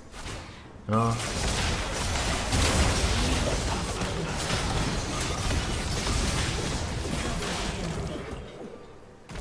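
Game spells burst and clash loudly.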